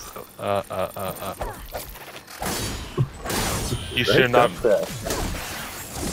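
Heavy blows land with sharp metallic clanks.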